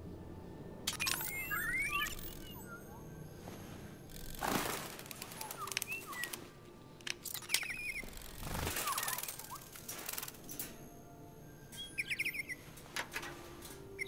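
Small birds chirp and trill.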